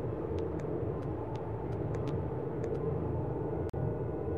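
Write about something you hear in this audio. Light footsteps patter quickly against a stone wall.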